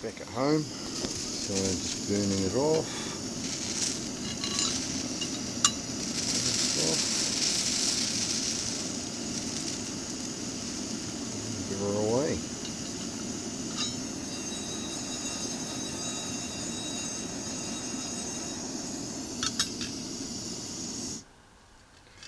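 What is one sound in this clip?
A gas camping stove roars steadily.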